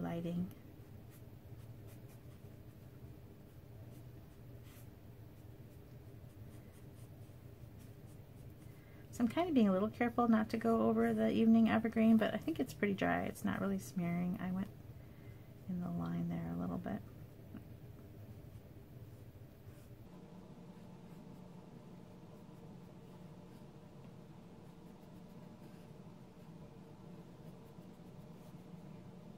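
A felt-tip marker scratches softly on card.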